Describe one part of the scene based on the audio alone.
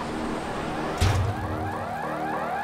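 A bicycle lands hard with a heavy thump.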